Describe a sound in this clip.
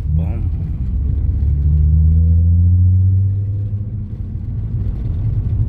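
A car engine hums steadily from inside the car, its pitch rising and falling.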